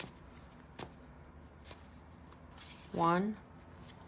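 A deck of cards shuffles with soft flapping and clicking.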